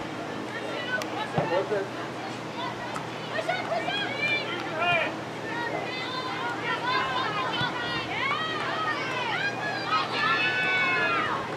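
Young women shout and call out across an open field.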